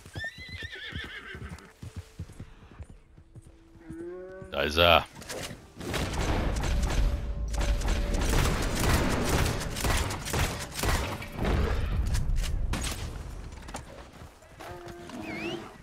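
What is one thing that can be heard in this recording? A horse's hooves thud on the forest floor.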